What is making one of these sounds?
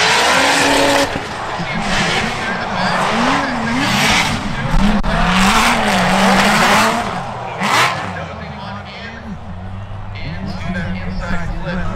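Tyres squeal loudly as cars slide.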